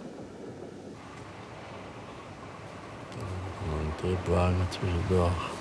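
A passenger train rumbles past.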